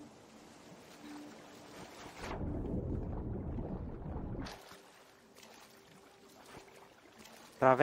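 Water splashes and swirls as a swimmer strokes through it.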